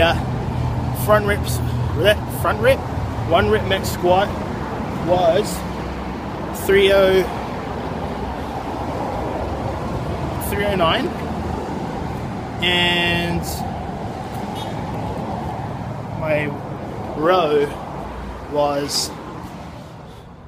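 A man talks quietly and close by, in short bursts.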